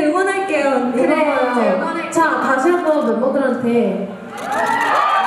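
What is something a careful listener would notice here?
A young woman speaks with animation through a microphone in a large hall.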